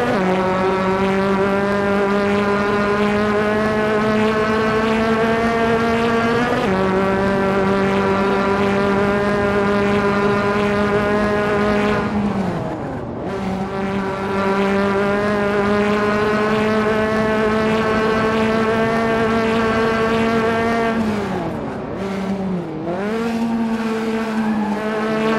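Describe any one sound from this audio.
A racing car engine roars at high revs, shifting gears and dropping in pitch as it brakes into corners.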